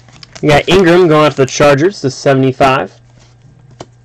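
A trading card rustles as hands slide it out.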